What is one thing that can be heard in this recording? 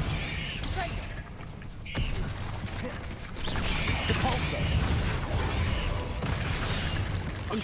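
Magic spells whoosh and crackle in a game.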